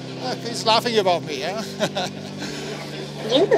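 A middle-aged man speaks cheerfully and close by.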